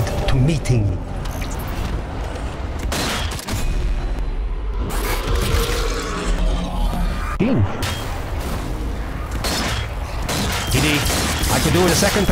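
A rifle fires sharp shots.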